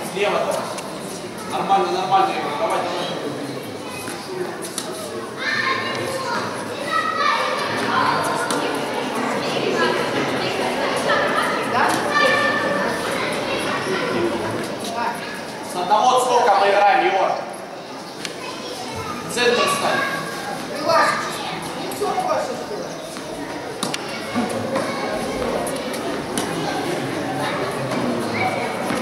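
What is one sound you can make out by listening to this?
Children and adults chatter nearby in an echoing hall.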